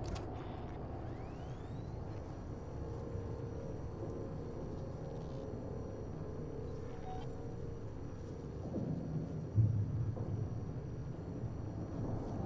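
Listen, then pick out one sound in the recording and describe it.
An electronic tracker powers up with a rising whine and then hums with a faint, steady high tone.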